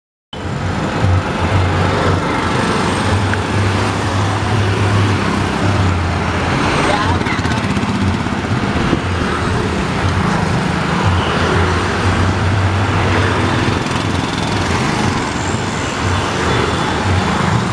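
Traffic roars by on a busy road.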